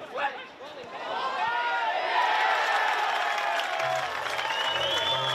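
Young men cheer loudly in celebration.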